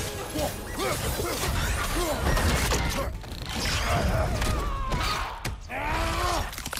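Heavy blows land with deep thuds.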